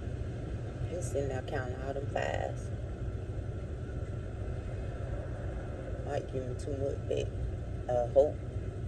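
A middle-aged woman speaks calmly and close by, in short bursts.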